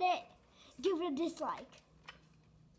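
A young boy talks excitedly and close by.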